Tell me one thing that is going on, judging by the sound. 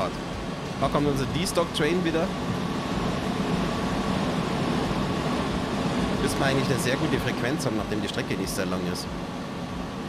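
A passing train rushes by close by.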